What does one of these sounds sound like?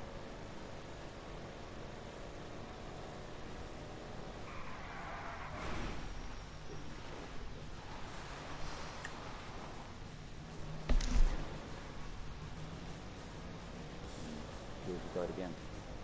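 A car engine roars steadily.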